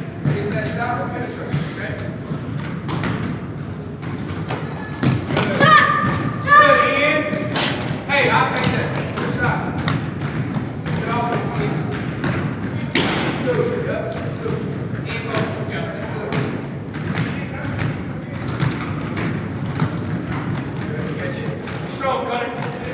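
Boys shout and call out to each other across the court.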